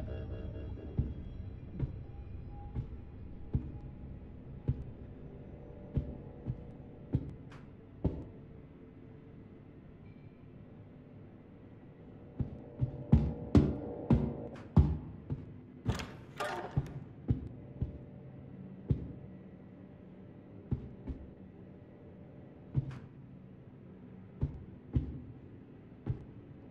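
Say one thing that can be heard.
Footsteps thud steadily on a hard metal floor.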